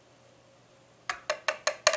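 A wire whisk taps against the rim of a bowl.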